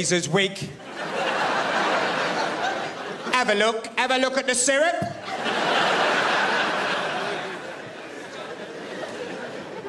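A large audience laughs and applauds.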